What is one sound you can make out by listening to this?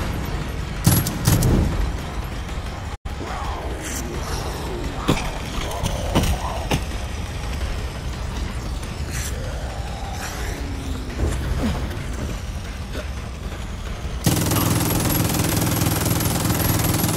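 A gun fires in sharp bursts.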